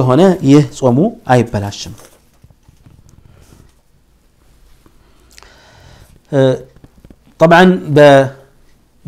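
A man speaks calmly and clearly into a close microphone, with pauses between phrases.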